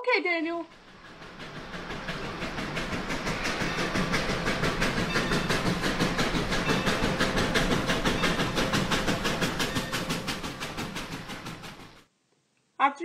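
A model train rattles along the tracks with a quick, even clatter that grows louder and then fades.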